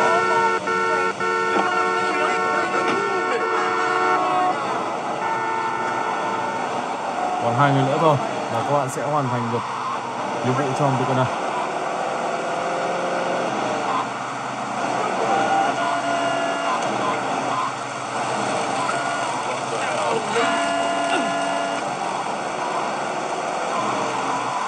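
A car engine hums in a video game through a small speaker.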